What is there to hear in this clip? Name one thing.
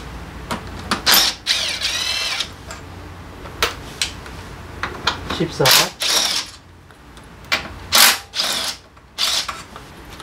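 A cordless electric ratchet whirs in short bursts, undoing bolts.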